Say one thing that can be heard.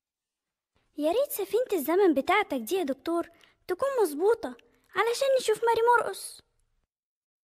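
A child speaks excitedly and loudly.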